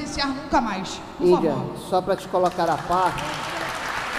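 A woman speaks with animation into a microphone in a large echoing hall.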